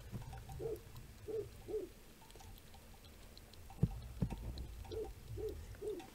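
Liquid drips into a metal kettle.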